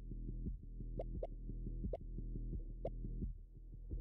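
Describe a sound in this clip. Soft blips sound as menu choices change.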